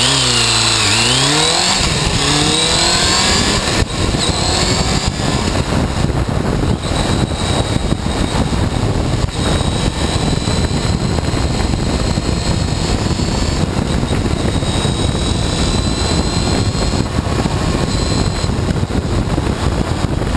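A motorcycle engine revs up and shifts gears as the bike speeds away.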